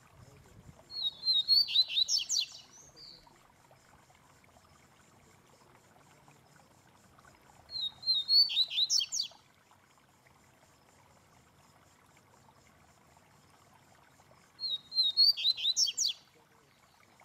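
A small caged bird sings short, bright trilling phrases close by, three times with pauses between.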